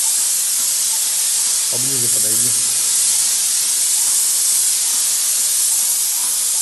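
A spray gun hisses steadily as it sprays paint.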